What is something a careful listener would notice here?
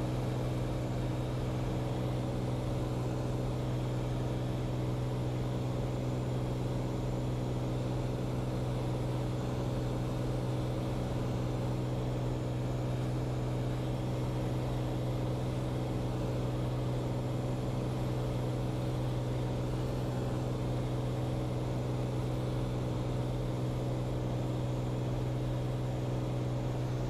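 A small propeller plane's engine drones loudly and steadily from close by.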